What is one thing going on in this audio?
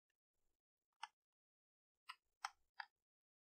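Small clicks come from a speaker's port being handled.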